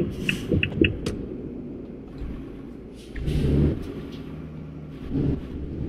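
A truck engine idles with a low steady rumble.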